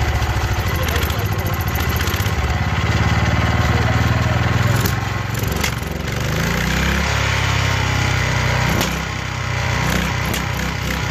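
A small engine runs loudly with a steady chugging throb, changing speed as it is adjusted.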